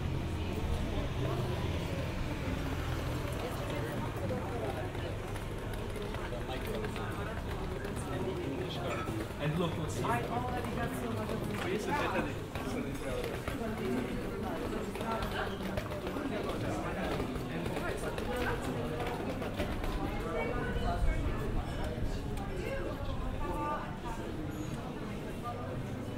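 Men and women chat nearby outdoors.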